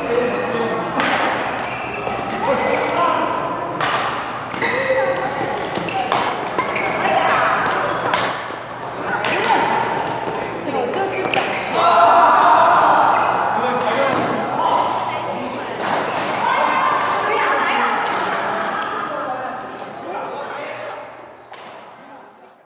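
Rackets hit a shuttlecock with sharp pops in an echoing hall.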